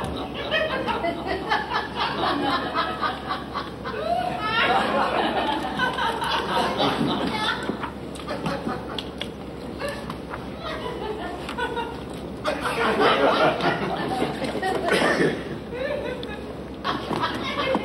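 An elderly man speaks in a playful, put-on voice.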